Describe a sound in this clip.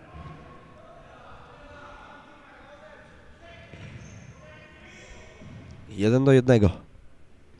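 Players' shoes squeak on a hard floor in a large echoing hall.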